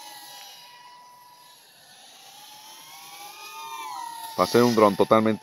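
A small drone's motors whine, rising and falling in pitch as it flies.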